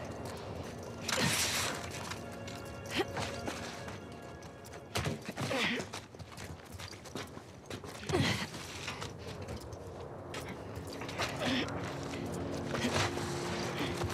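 Hands and boots thump on metal while climbing.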